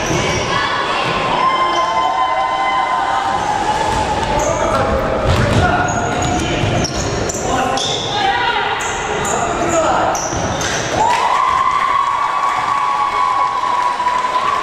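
A crowd of spectators shouts and chants.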